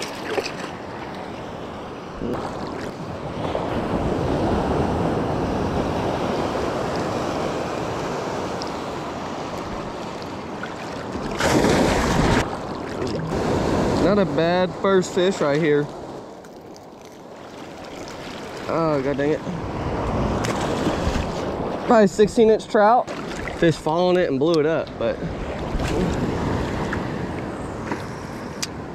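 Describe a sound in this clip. Sea waves wash and splash steadily close by.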